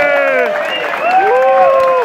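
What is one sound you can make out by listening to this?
A crowd of people clap their hands.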